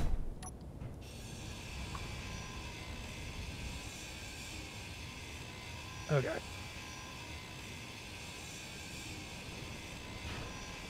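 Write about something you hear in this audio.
A welding tool hisses and buzzes steadily.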